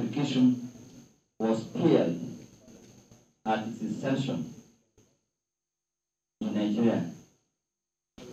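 An elderly man speaks steadily into a microphone.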